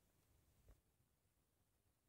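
A button on a device clicks as it is pressed.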